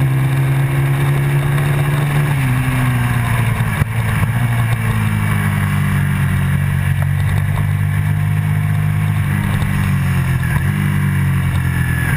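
A motorcycle engine roars loudly and shifts pitch as it shifts gears.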